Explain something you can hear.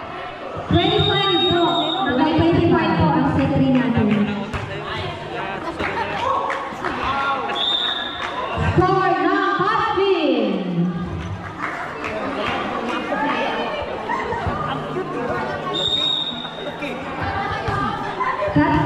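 Children shout and chatter across an echoing covered court.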